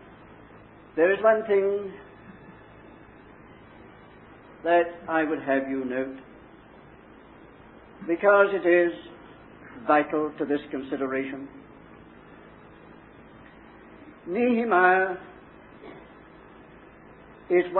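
A man speaks calmly in short phrases, heard through a microphone.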